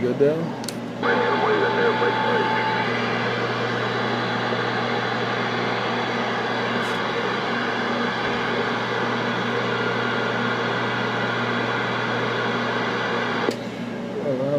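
Loud radio static hisses steadily from a loudspeaker.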